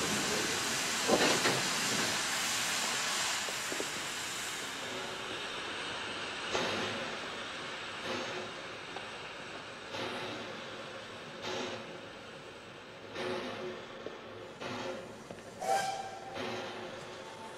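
Boots thud on metal steps as men climb down from a train carriage.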